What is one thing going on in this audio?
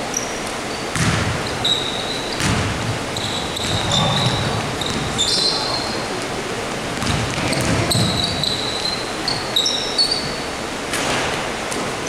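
A basketball bounces with echoing thumps in a large hall.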